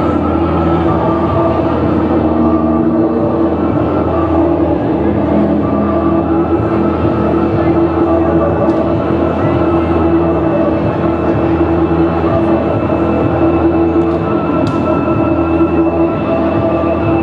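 Loud music with a steady drone plays through loudspeakers outdoors.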